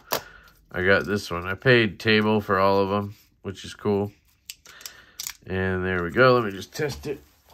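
A plastic knife sheath clicks and rattles as hands handle it.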